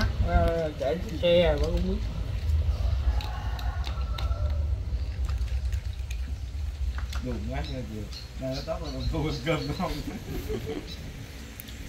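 A middle-aged man talks casually nearby.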